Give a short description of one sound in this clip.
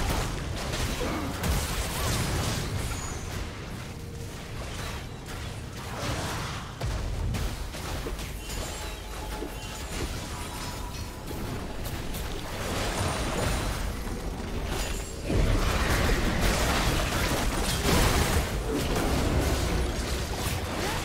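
Weapons clash and impacts thud in a fight.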